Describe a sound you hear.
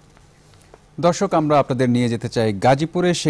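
A man reads out calmly and clearly into a microphone.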